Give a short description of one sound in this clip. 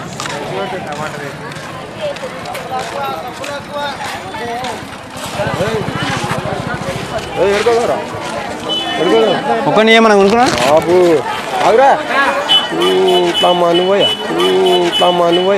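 A crowd chatters outdoors all around.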